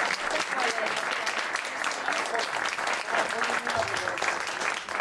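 A violin plays a melody.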